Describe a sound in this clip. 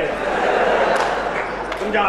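A man laughs loudly.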